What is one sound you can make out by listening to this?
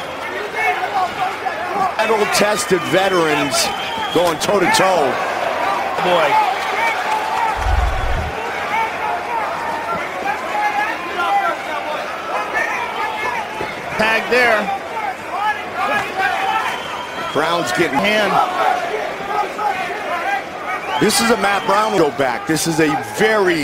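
A crowd cheers and roars throughout a large arena.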